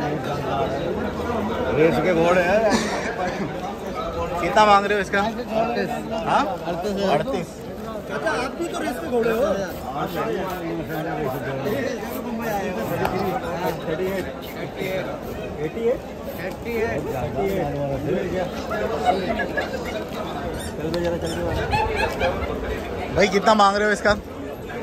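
Several men talk loudly nearby, with animation.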